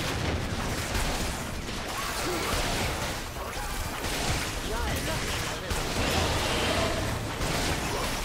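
Magic blasts and hits crackle and burst in a fast fight.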